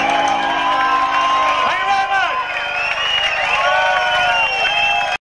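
An elderly man sings loudly into a microphone.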